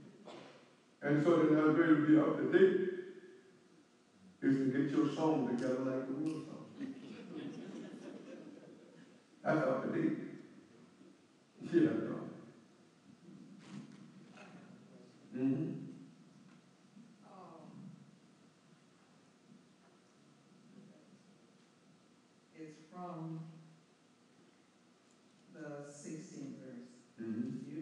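An elderly man speaks calmly and close up, with long pauses.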